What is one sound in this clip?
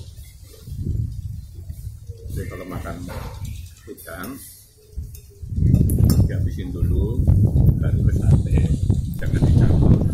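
An elderly man talks calmly.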